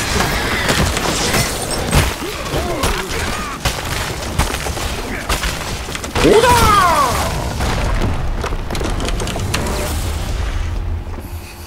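Game sound effects of a battle clash and boom.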